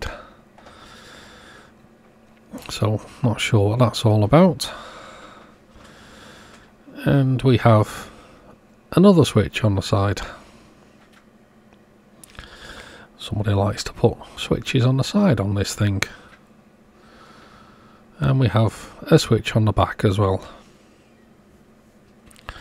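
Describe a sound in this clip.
Hands shift and handle a metal radio set on a table.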